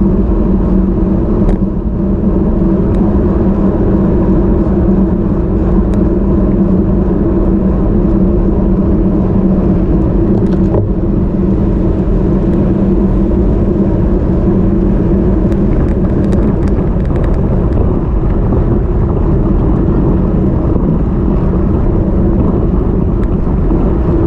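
Wind buffets loudly and steadily past a moving bicycle.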